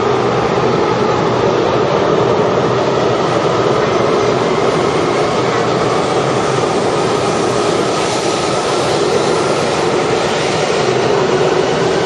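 A train pulls away and rolls past with a rising whir.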